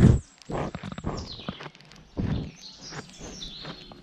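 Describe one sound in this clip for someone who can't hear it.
A goat sniffs and snuffles close by.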